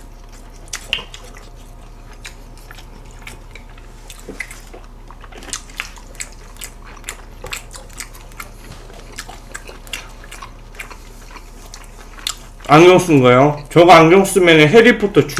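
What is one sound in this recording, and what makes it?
Young men chew food noisily, with wet smacking sounds.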